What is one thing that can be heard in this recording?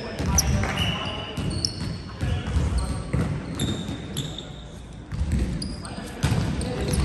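A volleyball is struck with a hand in an echoing gym.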